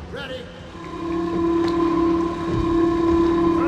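A lift hums steadily as it rises.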